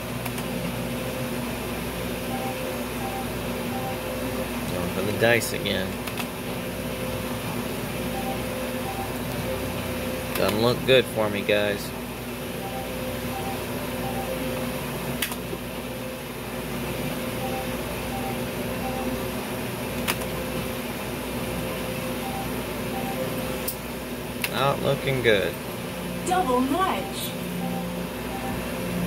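A slot machine plays short electronic beeping tunes as its reels spin.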